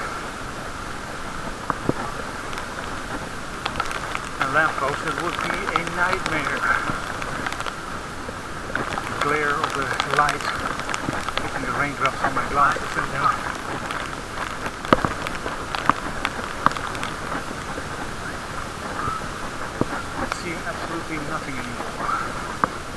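Bicycle tyres hiss steadily on a wet path.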